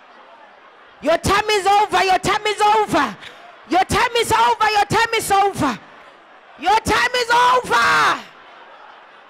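A woman sings loudly into a microphone through loudspeakers.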